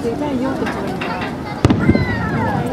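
Fireworks burst with loud bangs.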